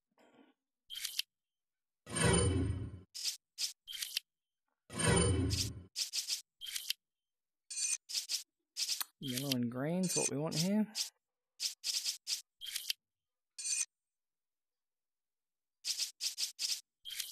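Short electronic menu clicks and blips sound again and again.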